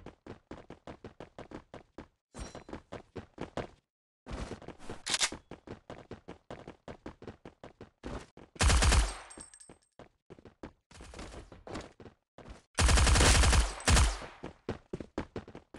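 Footsteps tap quickly and steadily on a hard floor.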